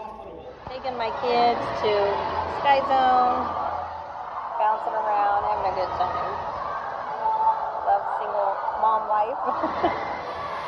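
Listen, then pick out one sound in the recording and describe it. A middle-aged woman talks cheerfully, close by.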